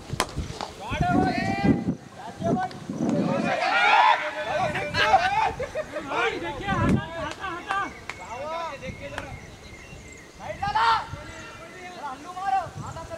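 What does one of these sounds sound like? Men shout across an open field.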